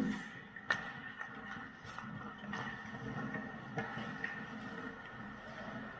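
Hockey sticks clack against a puck in a large echoing rink.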